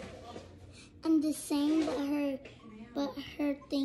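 A young girl speaks with animation close by.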